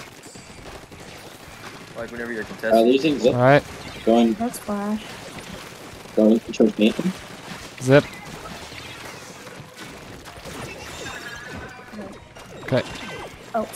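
Toy paint guns fire with wet, splattering bursts.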